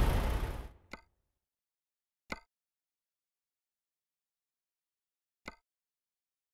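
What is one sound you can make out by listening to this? Menu clicks tick softly a few times.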